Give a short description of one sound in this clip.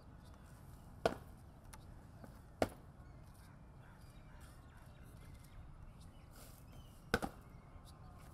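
Boots stamp sharply on hard ground a few times.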